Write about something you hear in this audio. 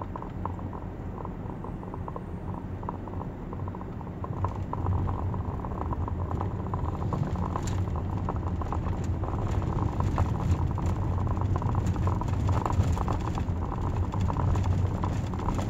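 Tyres roll over the road.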